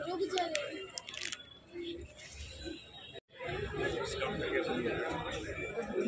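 A crowd of people chatters nearby.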